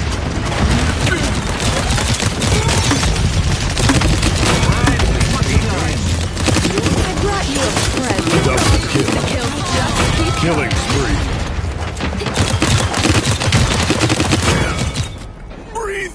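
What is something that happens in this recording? Rapid gunshots and blasts crackle and boom.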